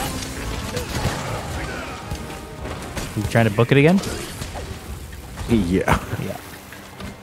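Heavy blows and crashes ring out in a fierce fight.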